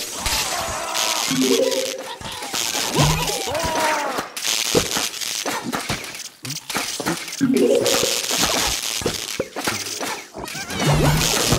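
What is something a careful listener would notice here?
Small impacts thud and pop repeatedly.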